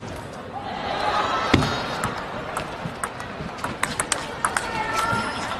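A ping-pong ball clicks rapidly back and forth off paddles and the table.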